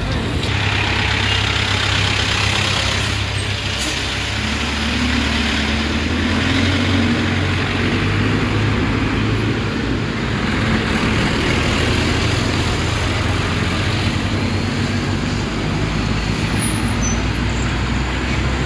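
Heavy trucks rumble past on a road.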